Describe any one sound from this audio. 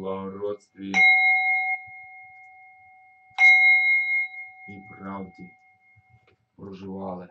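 A singing bowl is struck and rings out, slowly fading.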